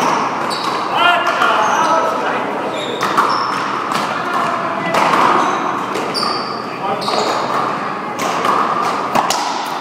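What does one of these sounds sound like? Rubber shoes squeak sharply on the court floor.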